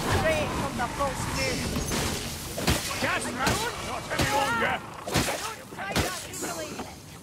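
Blades hack and clang against enemies in close combat.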